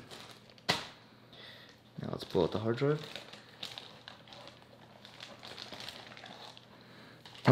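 Plastic wrap crinkles and rustles as hands handle it.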